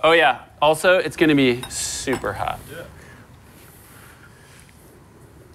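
A fork scrapes and clinks in a metal pan.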